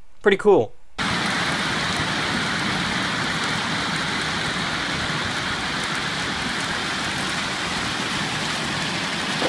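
Water gushes steadily from a pipe into a pool.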